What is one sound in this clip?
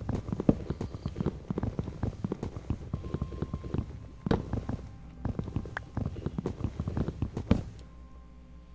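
Soft knocking taps repeat rapidly as a wooden block is struck.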